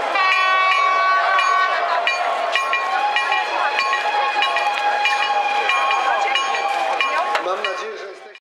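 Steam locomotive whistles blow loudly and steadily, several at once.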